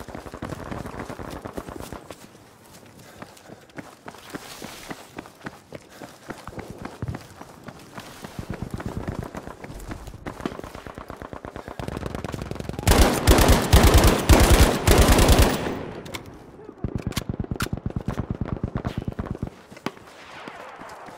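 Footsteps run quickly over pavement.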